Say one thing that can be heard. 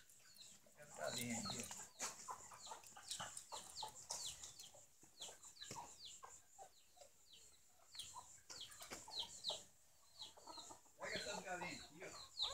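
Chickens cluck and peep nearby.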